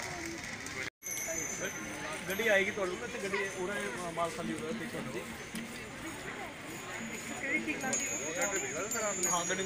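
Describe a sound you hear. Men talk nearby in casual voices.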